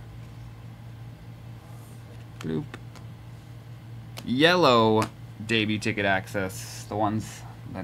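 A card in a plastic case rustles and clicks in a man's hands.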